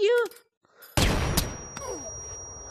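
A stun grenade goes off with a loud, sharp bang.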